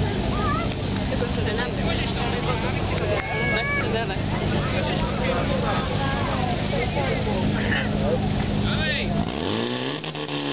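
A crowd of men and women chatters in the distance.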